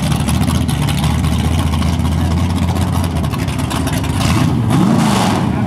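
A drag racing car's engine idles loudly with a deep rumble.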